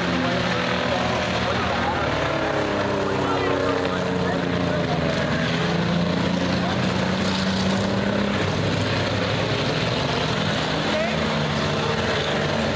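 Race car engines roar and whine as the cars circle a dirt track.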